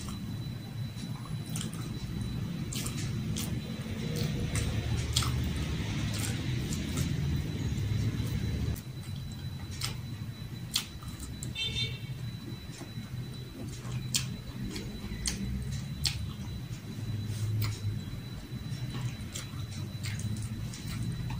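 Fingers tap and scrape food on a plate.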